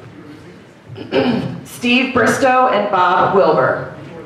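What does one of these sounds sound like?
A middle-aged man speaks calmly into a microphone over a loudspeaker in an echoing hall.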